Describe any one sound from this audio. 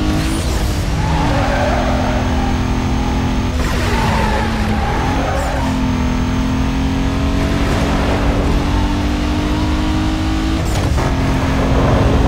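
A racing car engine roars at high revs, shifting gears as it speeds along.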